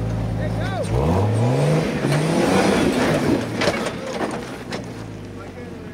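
Tyres scrape and grind over rock.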